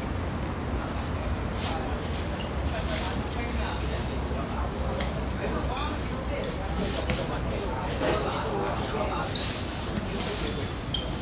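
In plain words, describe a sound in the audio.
Young people shout and call out to each other in the distance outdoors.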